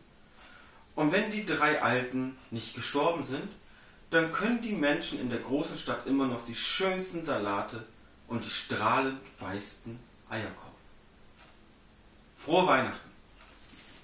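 A man reads aloud calmly, close by.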